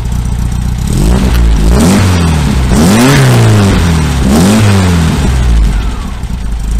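A vehicle engine revs up and down several times.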